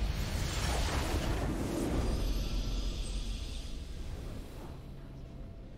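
A triumphant game fanfare rings out and fades.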